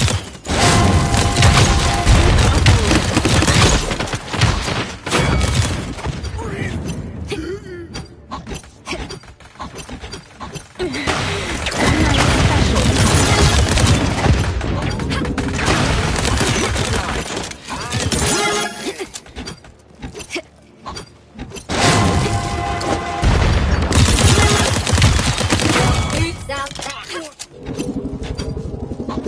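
Energy guns fire in rapid bursts with sharp electronic zaps.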